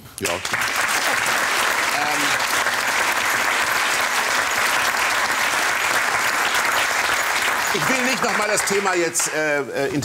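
A studio audience applauds loudly.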